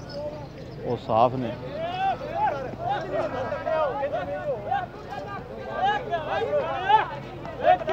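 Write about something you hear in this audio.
Men talk and call out nearby outdoors.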